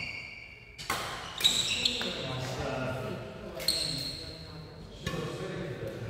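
A racket strikes a shuttlecock with a sharp pop in an echoing hall.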